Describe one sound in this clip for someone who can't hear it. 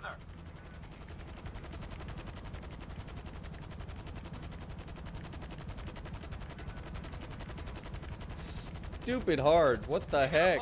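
A helicopter's rotor thumps steadily overhead.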